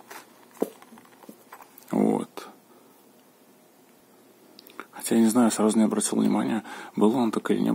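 A hard zippered case is handled, with soft knocks and clicks.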